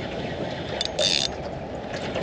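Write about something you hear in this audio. A fishing reel clicks and whirs as its handle is wound.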